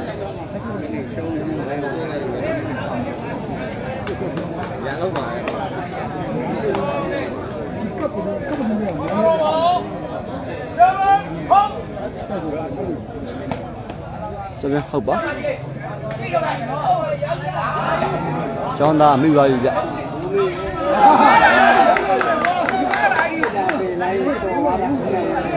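A large outdoor crowd chatters and murmurs throughout.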